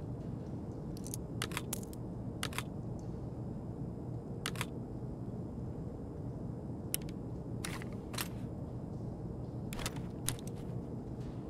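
Gear clatters softly as items are moved around an inventory.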